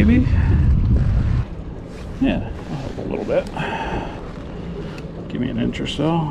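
A plastic board knocks against a kayak.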